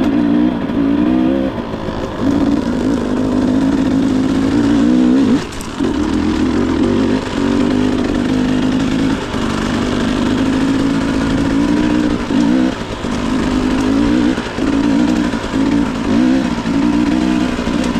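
A dirt bike engine revs up and down steadily.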